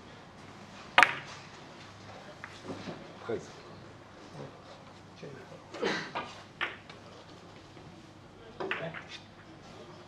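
Billiard balls click against each other and the cushions.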